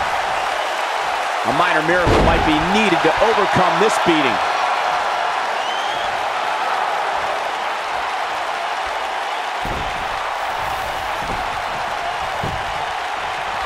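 A body slams heavily onto a wrestling ring mat with a thud.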